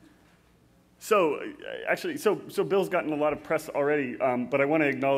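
A man speaks clearly through a microphone in a large hall.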